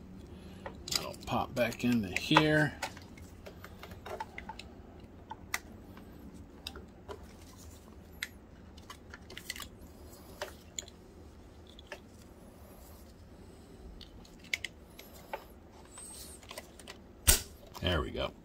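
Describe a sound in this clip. Plastic parts click and snap as hands work them together.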